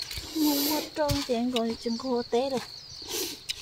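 A woman talks nearby outdoors.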